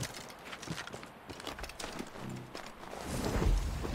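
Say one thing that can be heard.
Footsteps crunch through snow and brush.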